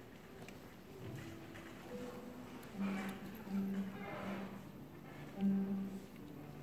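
An orchestra's strings play quietly.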